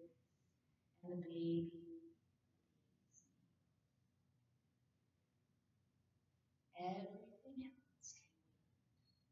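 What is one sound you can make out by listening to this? A woman speaks calmly and softly, with long pauses.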